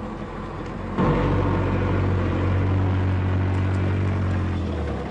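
A vehicle engine rumbles loudly as trucks drive past on a dirt road.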